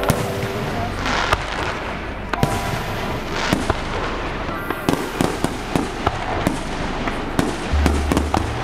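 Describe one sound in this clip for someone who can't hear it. Fireworks explode with loud bangs and pops.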